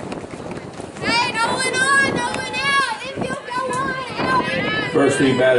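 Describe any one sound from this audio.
Girls shout and cheer in high voices nearby.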